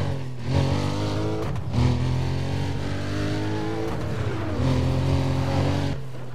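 A sports car engine roars, its pitch rising with each gear and dropping at each shift.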